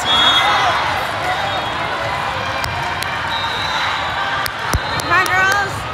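A volleyball bounces on a wooden floor.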